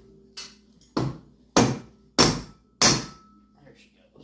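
A hammer strikes metal in sharp, loud blows.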